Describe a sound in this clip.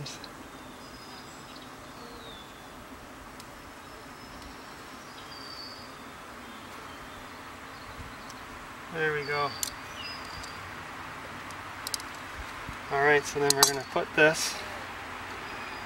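Bees buzz softly around a hive.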